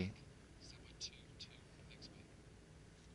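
Pool balls click together softly.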